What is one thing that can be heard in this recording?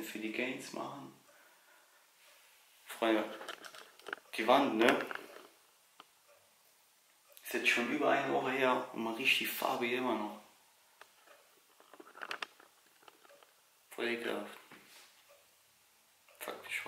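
A young man talks casually and close by, in short bursts with pauses.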